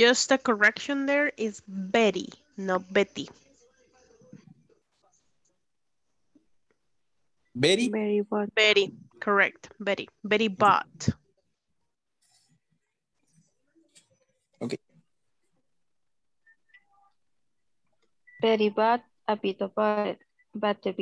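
A young woman reads out slowly and clearly through an online call, with pauses.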